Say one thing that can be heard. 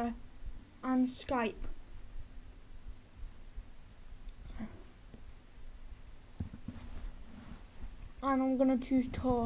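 A boy talks close to a microphone.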